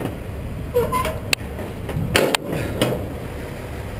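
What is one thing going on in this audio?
A metal bar clanks sharply against metal a few times.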